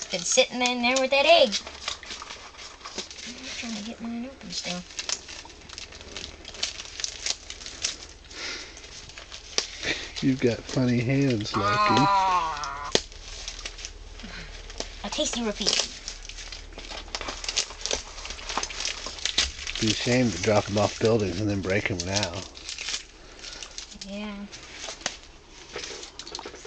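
Plastic bags crinkle and rustle.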